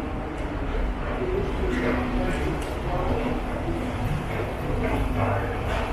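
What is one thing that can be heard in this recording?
Footsteps echo in a tiled underground passage.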